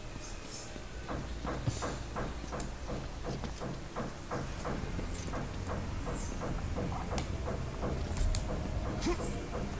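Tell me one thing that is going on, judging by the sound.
Heavy footsteps thud on stone at a steady pace.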